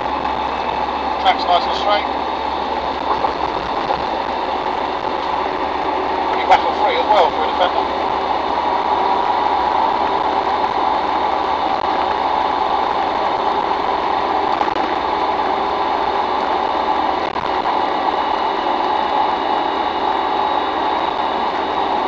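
A vehicle's engine drones steadily from inside the cab.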